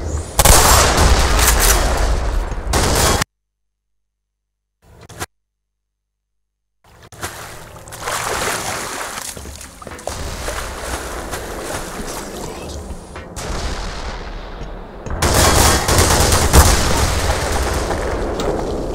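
Gunshots and explosions boom loudly.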